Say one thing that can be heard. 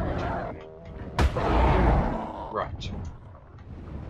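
Large wings flap heavily.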